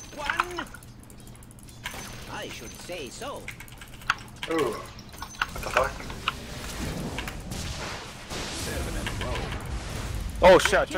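Game combat sounds of clashing blows and spell effects ring out.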